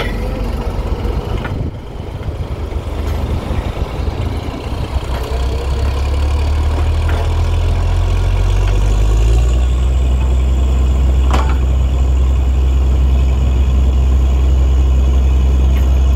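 A diesel engine of a drilling rig rumbles loudly and steadily, growing heavier.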